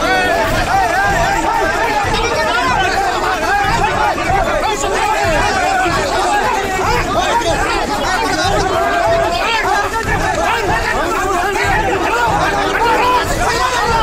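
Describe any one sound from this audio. A crowd of men shout and argue loudly close by.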